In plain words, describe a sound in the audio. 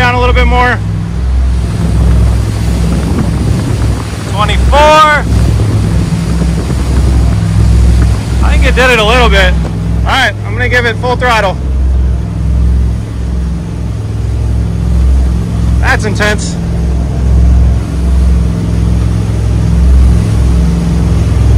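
A boat engine roars steadily at high speed.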